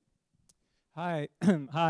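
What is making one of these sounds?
A man speaks up loudly and with animation, close to a microphone.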